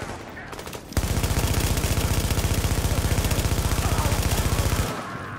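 An automatic rifle fires in a rapid, unbroken burst.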